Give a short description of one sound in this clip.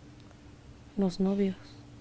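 A woman lets out a short, sleepy moan close by.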